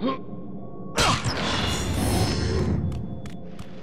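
Heavy blows strike and crash during a fight.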